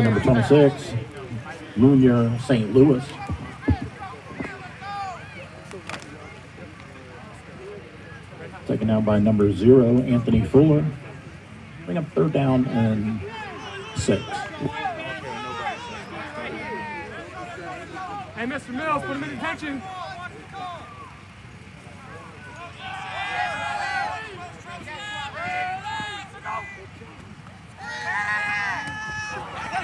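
Men shout from across an open outdoor field.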